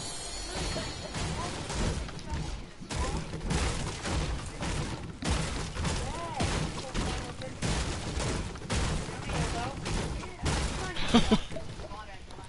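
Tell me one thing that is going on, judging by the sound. Wooden walls and floors thud quickly into place, one after another.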